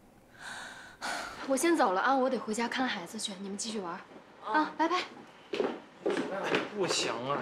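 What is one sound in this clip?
Young women talk.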